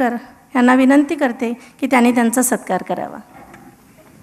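A woman speaks into a microphone in an echoing hall.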